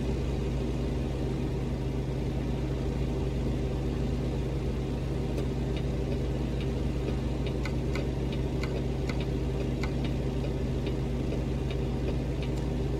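A truck engine hums steadily at low revs.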